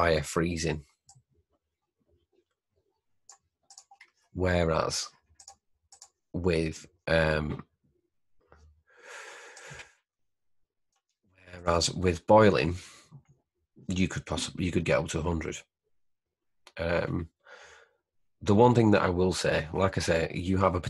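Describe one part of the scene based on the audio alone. A man speaks calmly into a close microphone, explaining in short phrases with pauses.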